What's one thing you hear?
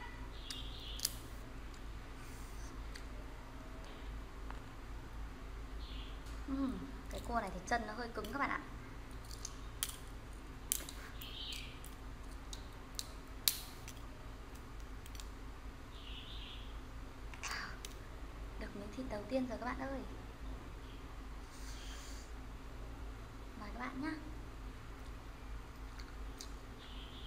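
Crab shells crack and snap between fingers.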